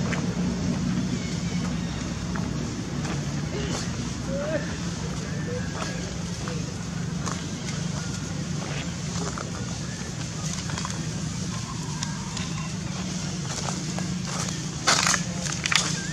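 Dry leaves rustle under a monkey's feet as it walks.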